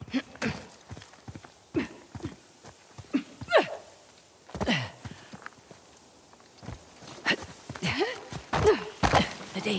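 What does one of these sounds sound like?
Footsteps run through grass and leaves.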